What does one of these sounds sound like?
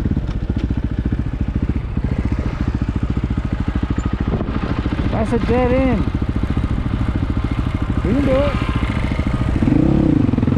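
A motorcycle engine idles close by.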